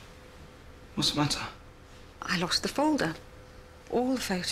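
A young woman speaks softly and calmly, close by.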